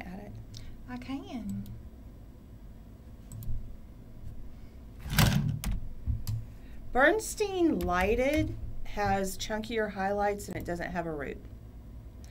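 A woman speaks calmly and close by, with animation in her voice.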